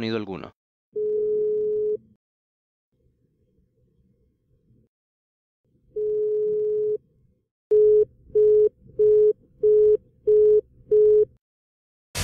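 A telephone tone beeps in long and then short pulses.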